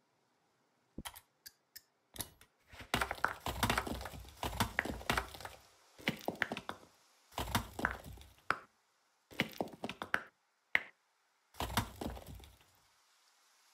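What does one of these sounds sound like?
A knife whittles and scrapes a wooden stick in quick bursts.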